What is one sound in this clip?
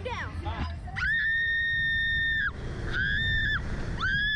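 A young woman screams loudly and long.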